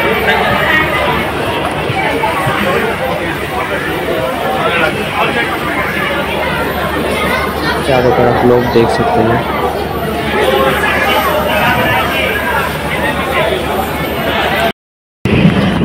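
A crowd of people chatters in a busy open hall.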